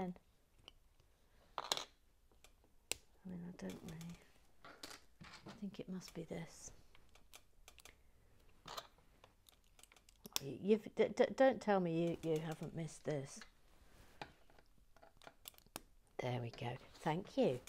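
Small plastic pieces click and tap together close by.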